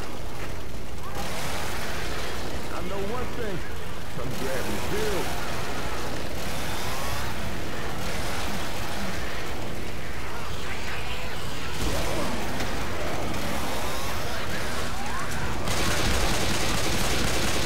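A chainsaw engine idles with a steady low rumble.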